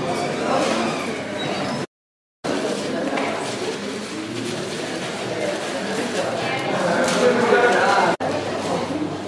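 A crowd of adults chatters indoors.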